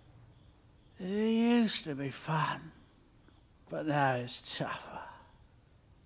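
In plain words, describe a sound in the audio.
An elderly man speaks softly and weakly in two short bursts.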